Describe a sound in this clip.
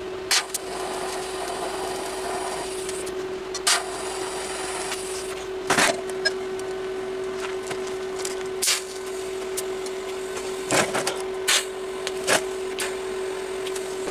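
A MIG welder crackles and hisses while welding steel.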